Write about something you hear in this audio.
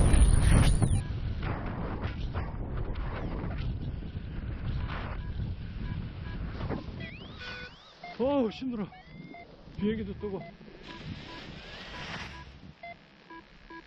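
A light breeze rustles outdoors after landing.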